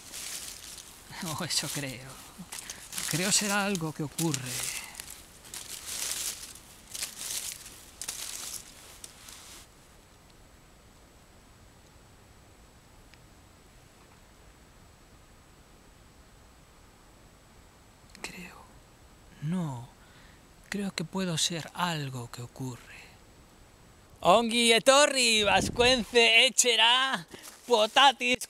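A man talks softly, close by.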